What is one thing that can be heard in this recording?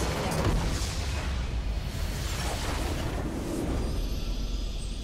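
A game's base explodes with a loud crumbling blast.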